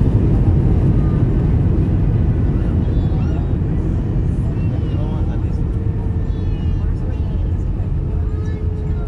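A jet plane's engines roar loudly as the plane rolls down the runway after landing, slowly easing off.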